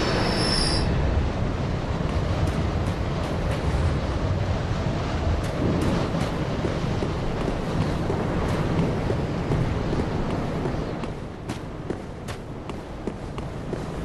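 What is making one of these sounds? Armoured footsteps clank on stone.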